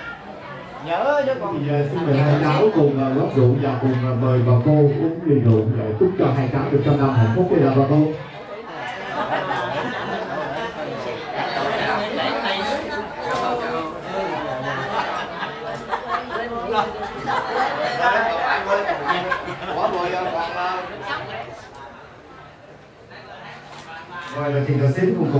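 A man speaks through a microphone and loudspeaker.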